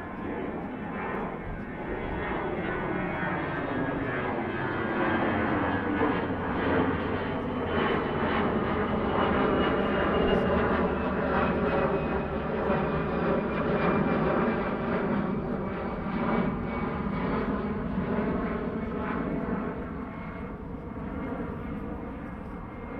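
A jet airliner roars overhead and slowly fades.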